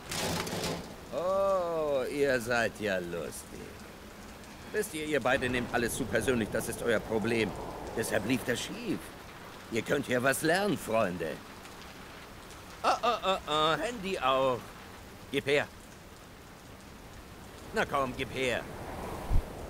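A man speaks in a mocking, taunting voice.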